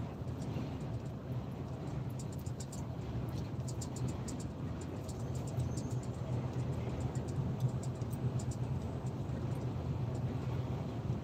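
Tyres roll with a low rumble on the highway.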